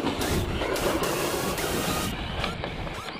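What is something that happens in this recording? A small electric motor whines as a remote-control car drives over dirt.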